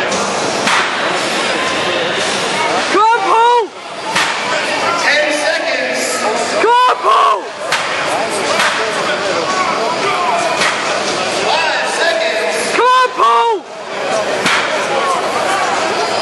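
A large crowd cheers and shouts loudly in a big echoing hall.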